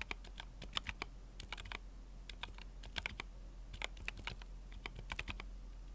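Keys on a mechanical keyboard clack quickly and unevenly under fast typing.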